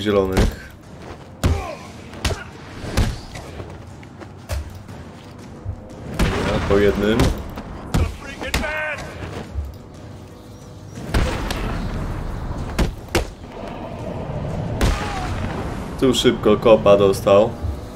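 Punches and kicks thud in a game fight.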